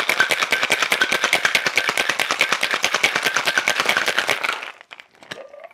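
Ice rattles hard in a cocktail shaker shaken fast.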